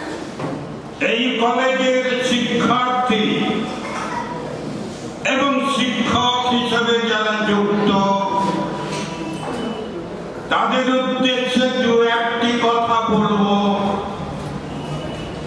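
An older man speaks calmly into a microphone, heard through loudspeakers.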